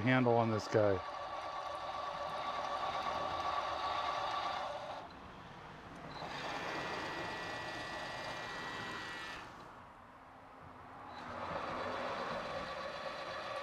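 A machine motor whirs steadily, pausing and starting again.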